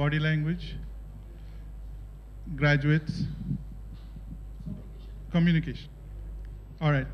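A middle-aged man speaks through a microphone in short bursts, with pauses between phrases.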